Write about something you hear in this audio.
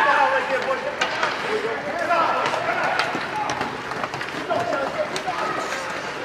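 Hockey sticks clack against the puck and ice.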